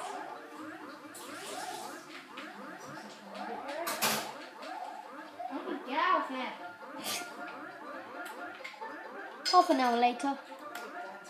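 Bouncy video game music plays through a television speaker.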